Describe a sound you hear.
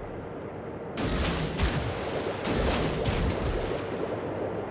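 Heavy naval guns fire in loud booming salvos.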